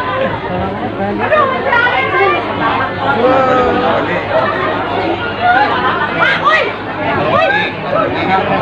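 A lively crowd of men and women chatters and calls out close by.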